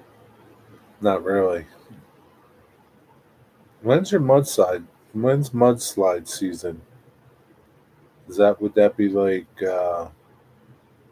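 A middle-aged man speaks calmly and close to the microphone, with pauses.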